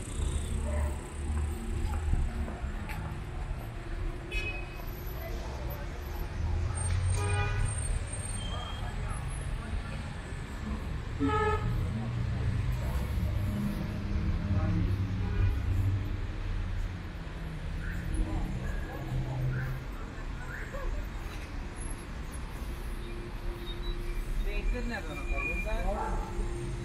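City traffic rumbles steadily nearby outdoors.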